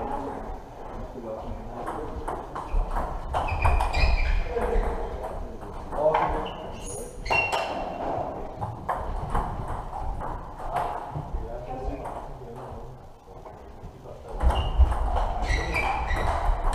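Players' shoes squeak and thud on the floor.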